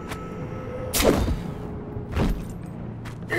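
A sword blade strikes metal with a sharp clang.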